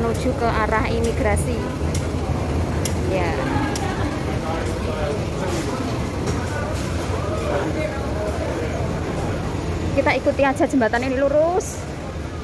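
A crowd murmurs and footsteps shuffle in a busy walkway.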